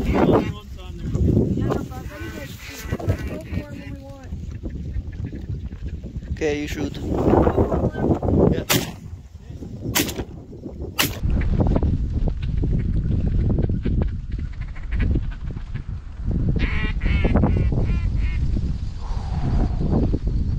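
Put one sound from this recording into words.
A flock of snow geese calls overhead.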